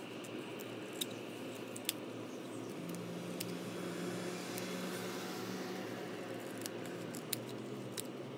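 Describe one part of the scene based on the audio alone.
Scissors snip through folded paper.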